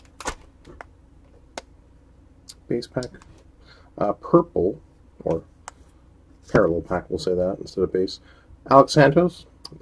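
Trading cards slide and tap against each other as they are flipped through.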